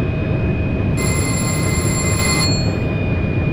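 A cab warning alarm beeps briefly.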